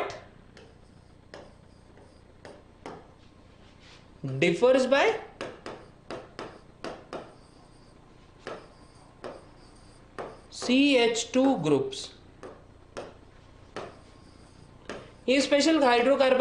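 A marker taps and scratches on a writing board.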